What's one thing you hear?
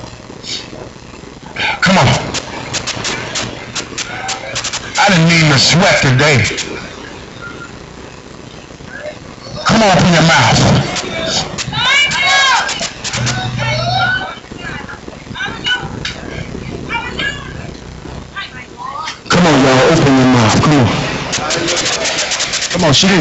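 A man preaches loudly and with passion into a microphone in a large echoing hall.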